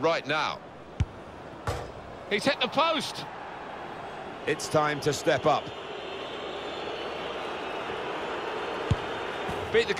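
A ball is struck hard with a thud.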